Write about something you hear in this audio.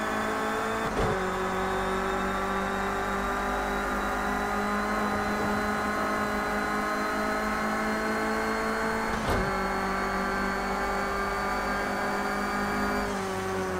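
A racing car engine drops sharply in pitch as gears change.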